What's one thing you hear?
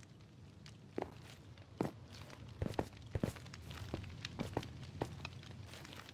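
Footsteps thud on hard stone.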